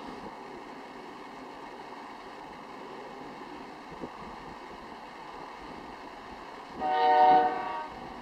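A freight train rumbles steadily along the tracks in the distance.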